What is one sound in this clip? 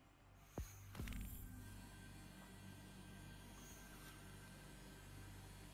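A deep magical hum drones steadily.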